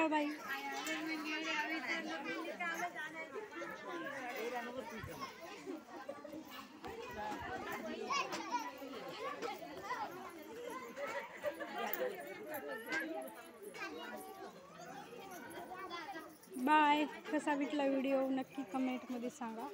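A crowd of women chatter and talk at once, close by.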